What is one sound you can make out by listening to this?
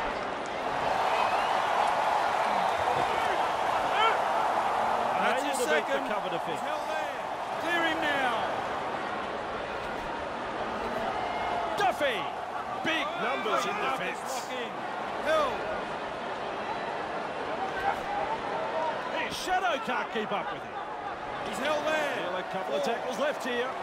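A large crowd roars and cheers steadily in a stadium.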